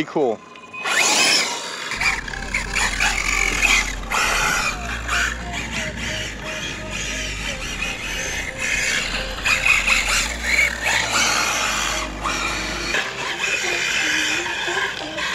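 A small electric motor whines as a model car races.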